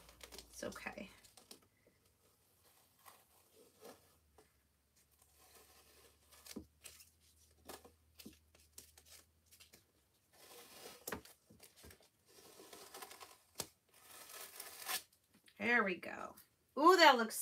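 A thin plastic sheet crinkles and rustles as it is peeled away.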